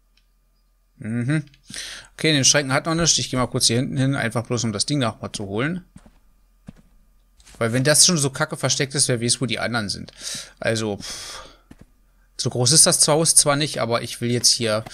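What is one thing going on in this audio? A young man talks into a close microphone, with animation.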